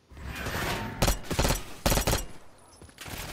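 Gunshots fire in quick bursts, loud and close.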